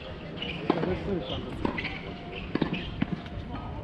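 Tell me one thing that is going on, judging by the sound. A tennis ball is struck with a racket in the distance.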